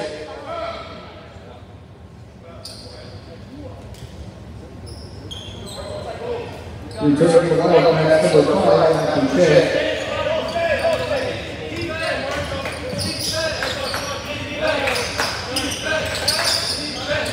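Basketball sneakers squeak sharply on a hardwood floor.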